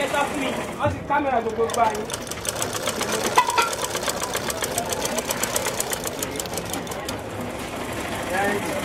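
A sewing machine rattles rapidly.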